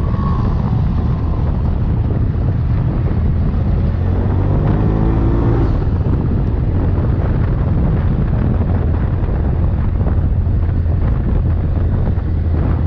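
Tyres crunch and rumble over a gravel dirt trail.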